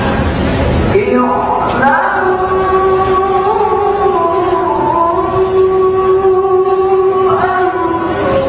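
A young man chants in a long, melodic voice through a microphone.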